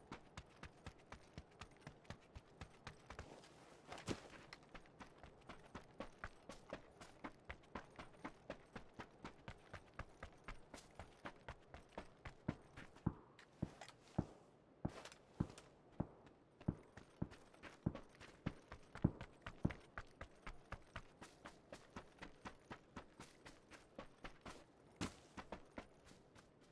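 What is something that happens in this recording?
Footsteps crunch steadily through grass.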